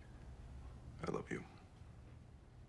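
A man speaks quietly and low over a phone.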